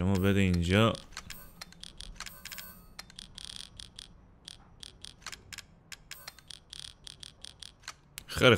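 Short electronic menu clicks tick quickly.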